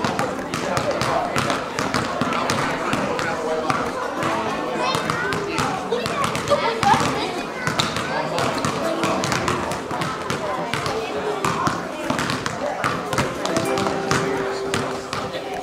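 Children shout and chatter.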